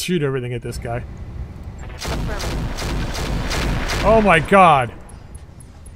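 A laser weapon fires with a loud crackling blast.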